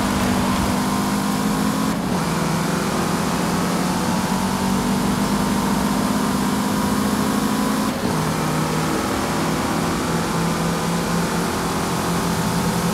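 A car engine roars steadily at high revs, dropping briefly as the gears shift up.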